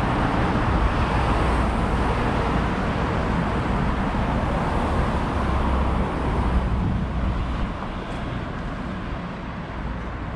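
Steady wind rumbles outdoors.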